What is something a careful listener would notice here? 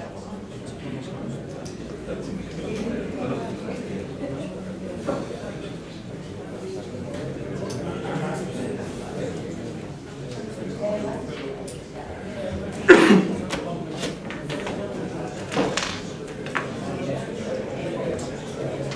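An elderly man speaks calmly into a microphone in a room with some echo.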